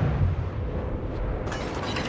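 Water rushes along the hull of a moving ship.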